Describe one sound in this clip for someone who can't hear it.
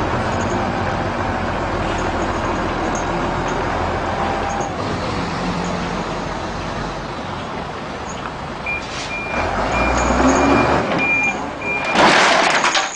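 A heavy truck engine rumbles as the truck slowly turns.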